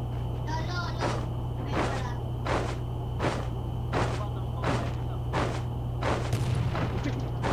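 Footsteps thud steadily over grass.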